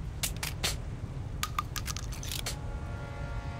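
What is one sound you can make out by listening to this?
Clicks and metallic clacks sound as a shotgun is reloaded.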